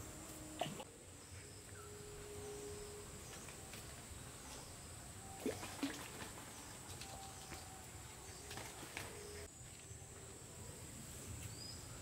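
Leaves and branches rustle as a woman moves about in a tree.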